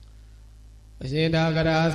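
A young man chants in a drawn-out voice through a microphone.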